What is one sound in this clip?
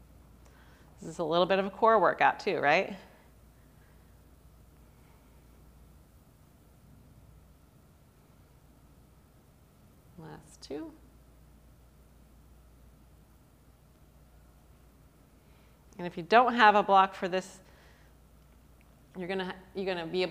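A woman speaks calmly in short phrases, close to a microphone.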